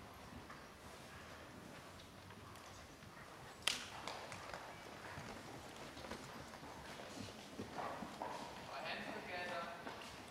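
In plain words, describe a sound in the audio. A horse's hooves thud on soft sand in a large echoing hall.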